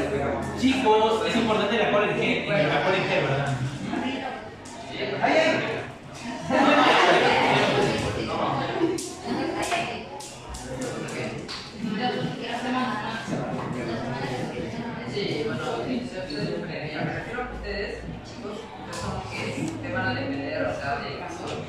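Several young people chatter in the background.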